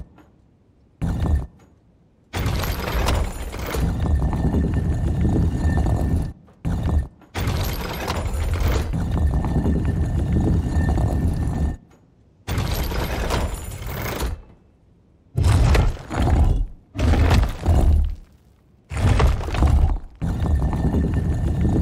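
A heavy stone dial grinds and rumbles as it turns, in repeated bursts.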